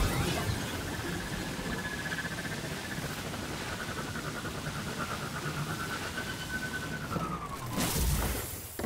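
A hover vehicle's engine hums steadily with a high whine, then winds down.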